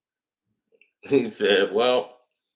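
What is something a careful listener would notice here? A middle-aged man speaks briefly and close to a microphone.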